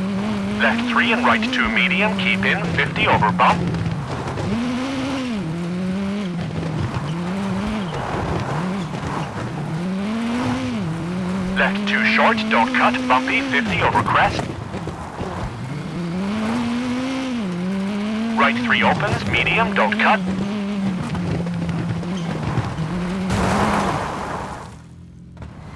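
A rally car engine revs hard, rising and dropping in pitch as it shifts gears.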